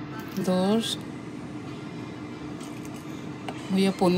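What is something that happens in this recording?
Water trickles from a bottle into a spoon.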